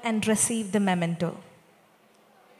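A children's choir sings loudly through microphones, then stops.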